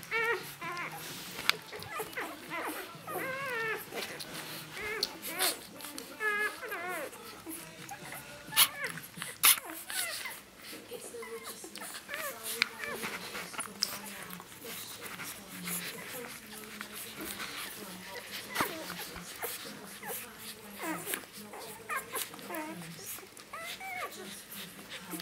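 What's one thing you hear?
Newborn puppies squeak and whimper in high, wavering cries.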